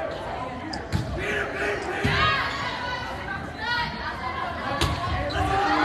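A volleyball is struck with thuds.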